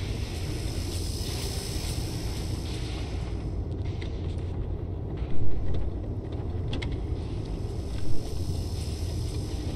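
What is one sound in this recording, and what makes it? A small cart rolls and creaks over the ground.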